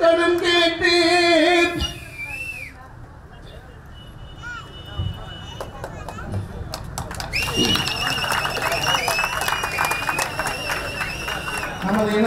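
A middle-aged man speaks with feeling into a microphone, heard through loudspeakers.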